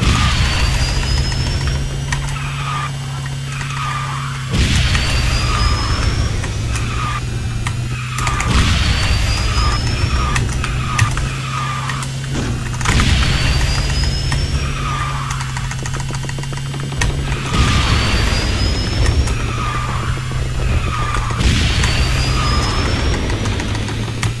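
A racing kart engine hums steadily at high speed.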